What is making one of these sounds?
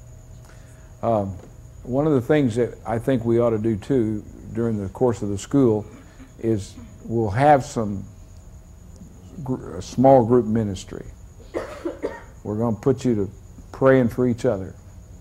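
A middle-aged man speaks with animation to an audience through a microphone.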